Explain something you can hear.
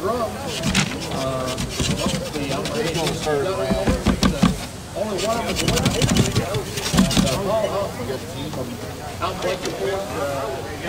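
Paper tickets rustle and tumble inside a spinning plastic drum.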